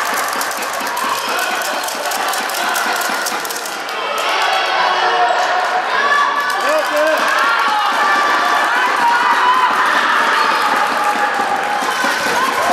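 Young girls shout and call out across the court.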